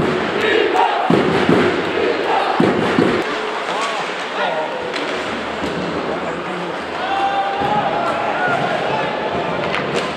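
Skates scrape across ice.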